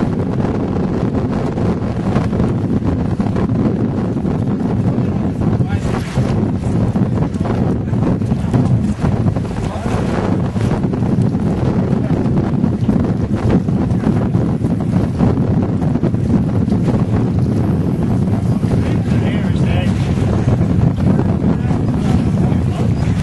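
Strong wind roars across the open water.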